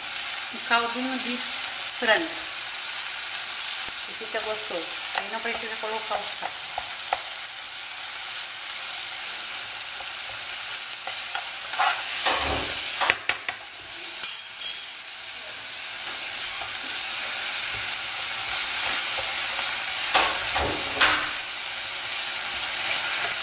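Food sizzles steadily in a pan.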